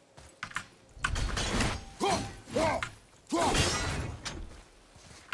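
An axe strikes a target with a heavy thud.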